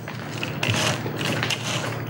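Sandals slap on a hard floor as a man walks past.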